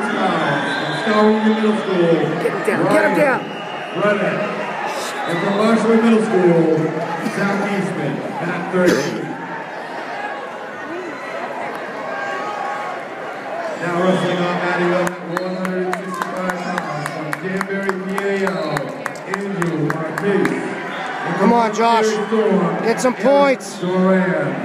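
A man in the crowd yells encouragement nearby.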